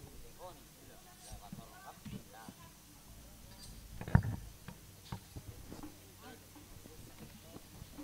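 A crowd of women and children chatters outdoors.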